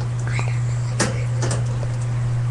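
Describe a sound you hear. A wire cage rattles and clicks.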